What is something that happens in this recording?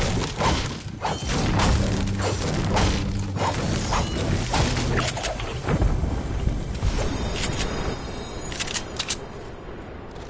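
Chests and items clink and chime as they are picked up.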